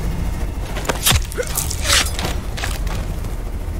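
Sharp thuds of a struggle ring out.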